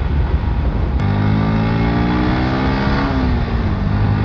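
A motorcycle engine revs up and then eases off.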